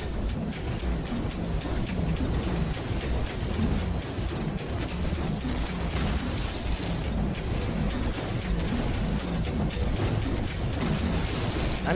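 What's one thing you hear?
A mining laser hums steadily as it cuts into the ground.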